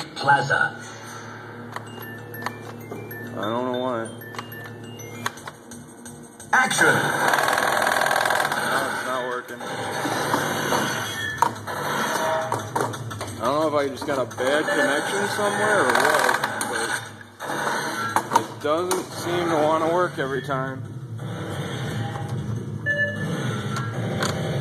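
An arcade game beeps and blares with sound effects.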